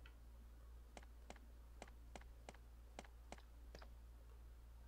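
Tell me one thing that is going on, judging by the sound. Footsteps click on a hard floor at a steady pace.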